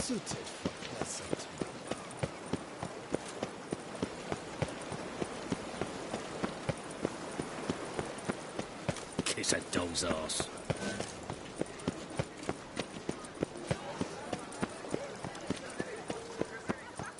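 Footsteps run quickly and evenly on stone paving.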